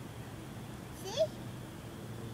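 A young child squeals with delight nearby.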